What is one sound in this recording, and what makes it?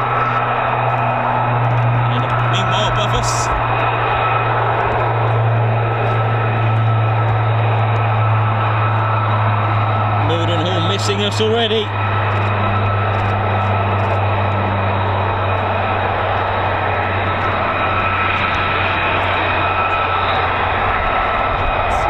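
A propeller aircraft drones steadily overhead.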